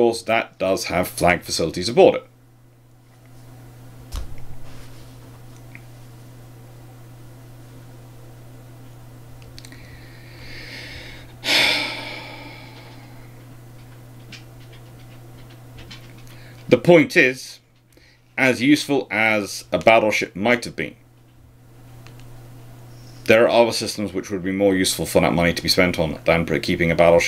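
A man talks calmly and closely into a microphone, pausing now and then.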